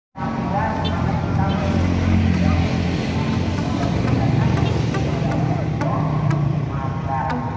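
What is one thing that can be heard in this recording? Motorbike engines hum and buzz past on a busy street.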